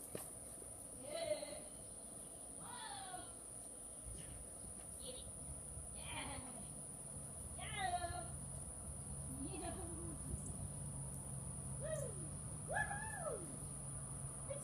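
A woman calls out to a dog in the distance, outdoors.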